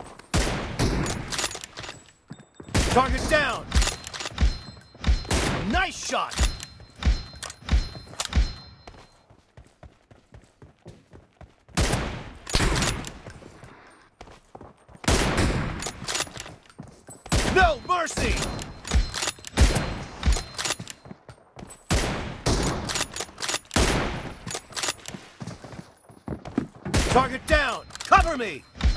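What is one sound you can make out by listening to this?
Automatic rifle bursts fire in rapid succession.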